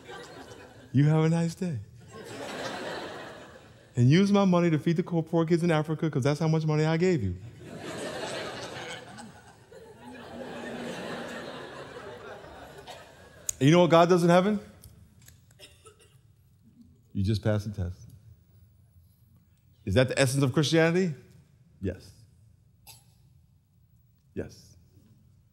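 A man speaks with animation into a headset microphone in an echoing hall.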